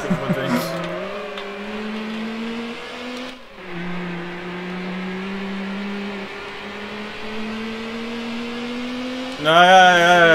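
A racing car engine roars steadily at high speed, dropping briefly as a gear shifts.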